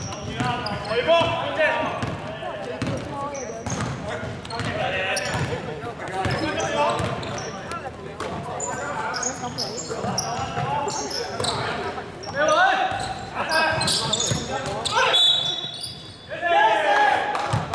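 A basketball bounces on a hard floor in a large echoing hall.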